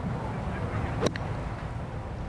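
A golf club strikes a ball with a sharp click.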